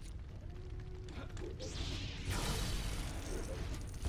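A loud explosion roars and crackles.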